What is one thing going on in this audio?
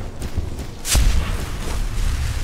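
A magical blast bursts with a sudden whoosh.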